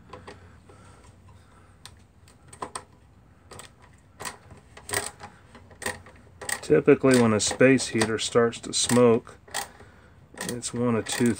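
A small metal device clicks and rattles as it is handled.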